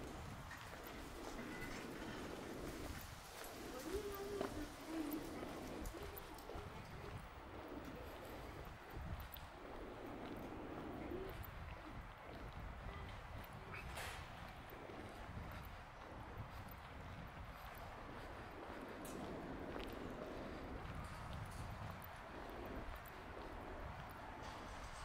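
Footsteps tap steadily on paving stones.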